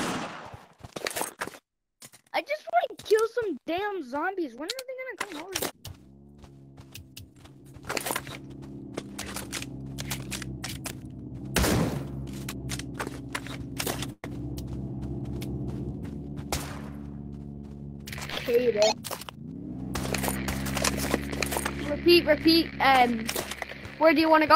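Gunshots crack in quick, sharp bursts.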